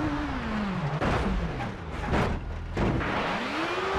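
A car lands with heavy thuds.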